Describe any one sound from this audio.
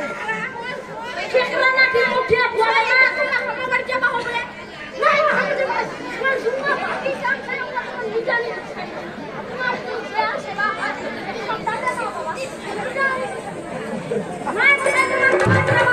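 A young woman cries out and pleads through a loudspeaker.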